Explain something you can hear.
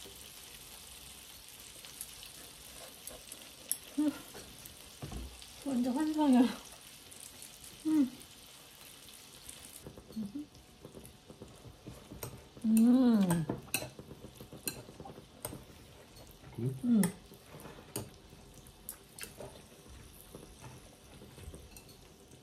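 Saucy noodles squelch as chopsticks stir them.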